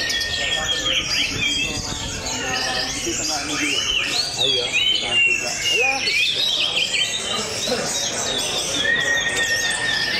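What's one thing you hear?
A songbird sings loudly with quick, varied whistles and trills.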